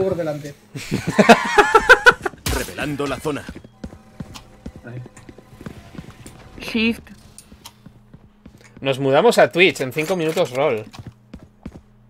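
A young man talks and laughs with animation, close to a microphone.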